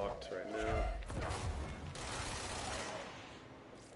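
A heavy blast booms with a deep rumble.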